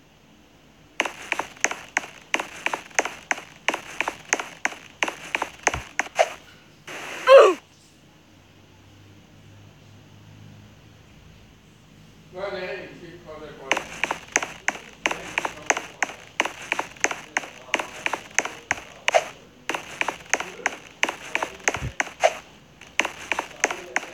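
Quick rhythmic footsteps patter as a game character runs.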